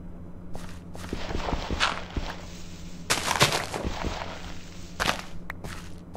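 Game sound effects of dirt being dug crunch in a quick run.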